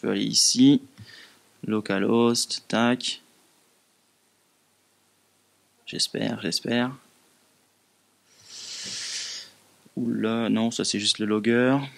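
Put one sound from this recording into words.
A young man speaks into a microphone in a calm, presenting manner.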